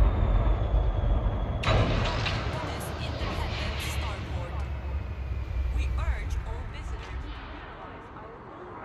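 A spaceship's engines hum with a deep, steady rumble.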